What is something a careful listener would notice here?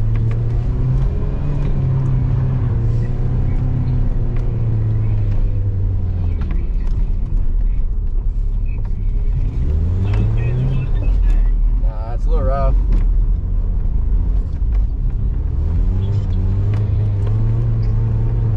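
A car engine hums and revs as the car drives slowly.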